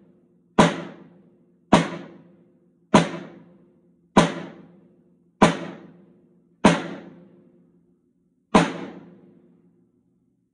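Single loud drum hits ring out one at a time, each followed by a short ringing decay.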